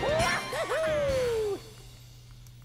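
A short cheerful game jingle plays.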